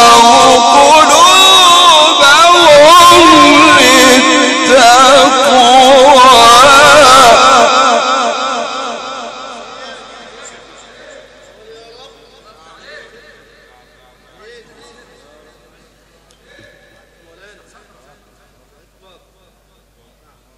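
An elderly man chants a melodic recitation through a microphone, then slowly fades away.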